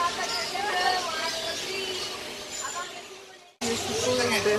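A flock of small parakeets chirps and squawks busily close by.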